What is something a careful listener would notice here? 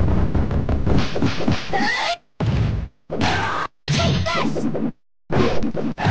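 Punches and kicks land with heavy thuds in an arcade fighting game.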